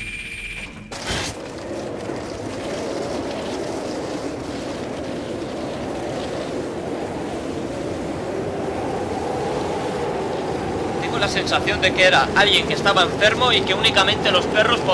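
A dog sled's runners hiss steadily over snow.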